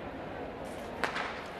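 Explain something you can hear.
A starting pistol fires with a sharp crack.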